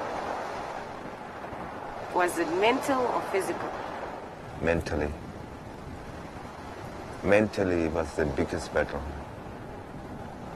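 Waves wash gently onto a beach.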